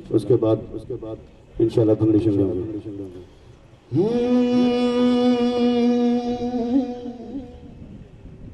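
A man sings loudly through a microphone and loudspeakers, ending on a long held note.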